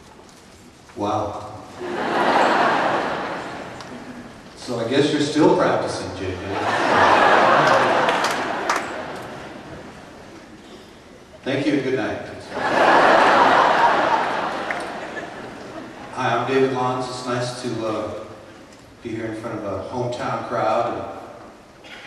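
An elderly man sings into a microphone, heard through loudspeakers in a large echoing hall.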